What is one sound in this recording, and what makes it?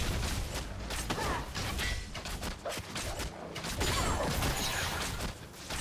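Game sound effects of spells and strikes crackle and clash.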